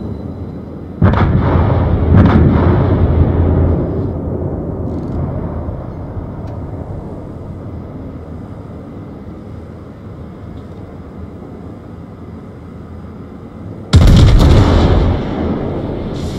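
Heavy naval guns fire with deep, booming blasts.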